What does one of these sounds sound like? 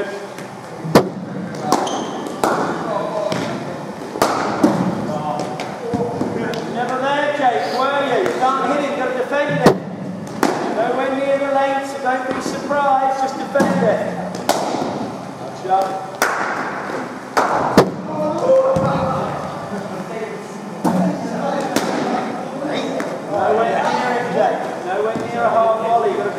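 A cricket bat strikes a ball with a sharp crack, again and again, in an echoing hall.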